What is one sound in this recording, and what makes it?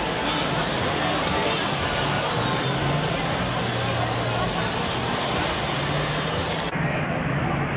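A crowd of people chatters in a busy outdoor street.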